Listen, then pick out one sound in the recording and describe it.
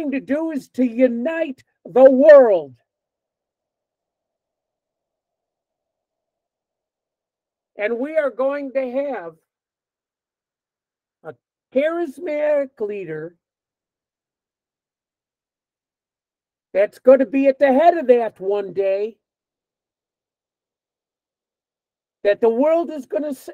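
An elderly man speaks with animation over an online call, in short bursts with pauses.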